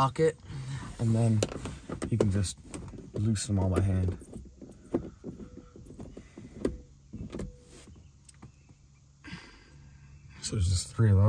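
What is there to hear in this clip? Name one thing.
Rain patters on a car window.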